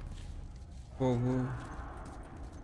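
A young man speaks briefly and close into a microphone.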